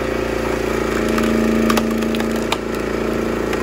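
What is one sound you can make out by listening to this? A log splitter's hydraulics whine as the wedge pushes through wood.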